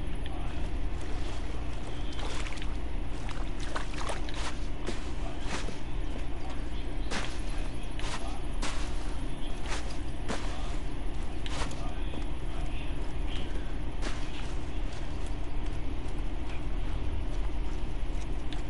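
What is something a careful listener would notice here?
Footsteps crunch through dry grass and sand.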